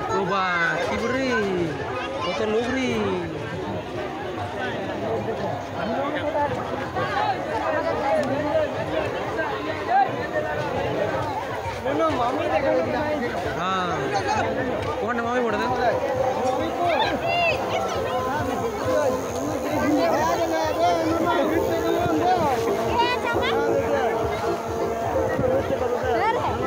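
A crowd of men and women chatters loudly all around, close by, outdoors.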